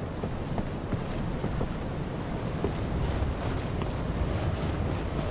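Armored footsteps crunch on snow.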